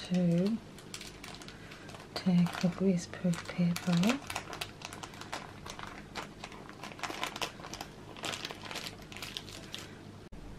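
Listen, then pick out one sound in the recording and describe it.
Baking paper rustles and crinkles close by.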